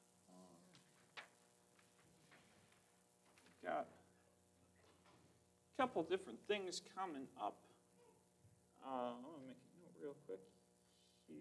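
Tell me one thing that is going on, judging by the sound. A man speaks calmly into a microphone in a large echoing hall, with pauses.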